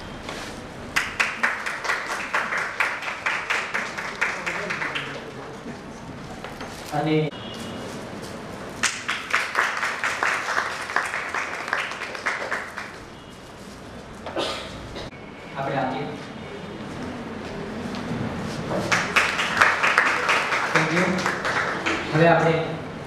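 A small audience claps in bursts.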